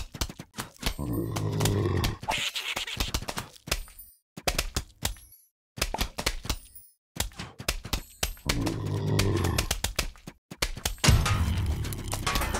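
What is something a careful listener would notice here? A giant cartoon zombie thuds as it smashes down.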